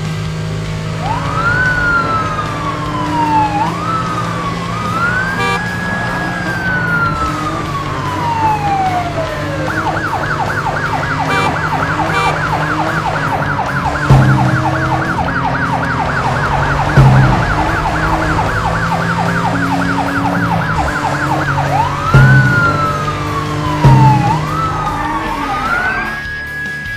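A police siren wails, rising and falling, then warbling rapidly.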